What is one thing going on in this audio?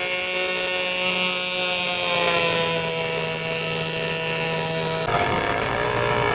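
A small motor whirs steadily.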